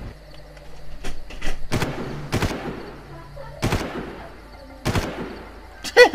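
A rifle fires single sharp shots.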